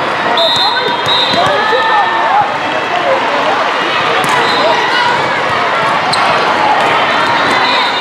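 A volleyball is struck with a hand.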